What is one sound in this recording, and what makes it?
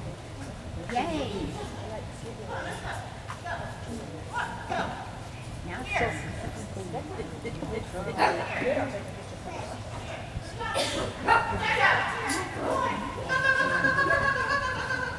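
A woman calls out short commands to a dog in a large echoing hall.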